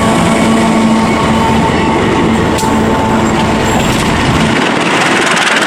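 A diesel locomotive engine hums steadily close by.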